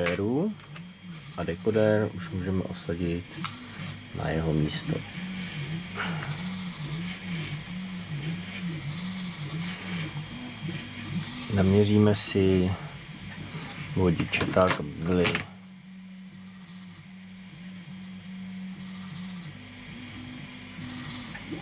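Metal tweezers and pliers click lightly against plastic parts.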